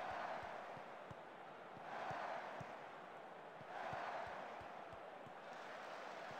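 A stadium crowd murmurs and roars in swelling waves.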